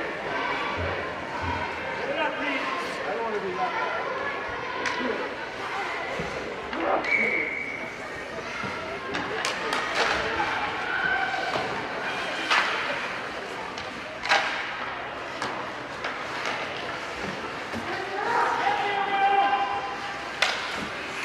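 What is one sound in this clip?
Skate blades scrape and hiss on ice.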